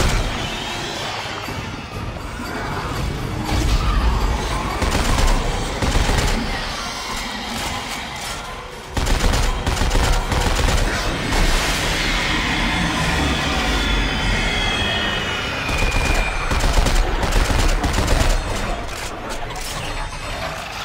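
Energy guns fire in rapid bursts.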